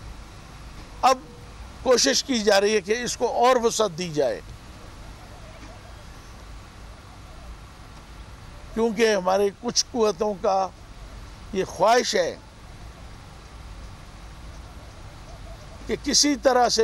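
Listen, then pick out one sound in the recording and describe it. A middle-aged man speaks into microphones in short bursts with long pauses.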